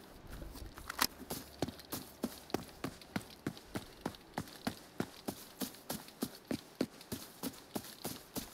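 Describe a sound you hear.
Footsteps crunch on gravel at a brisk, steady pace.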